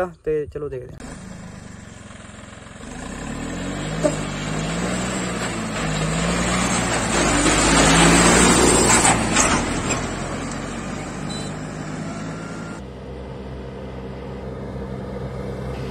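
A tractor engine rumbles as it drives past and fades.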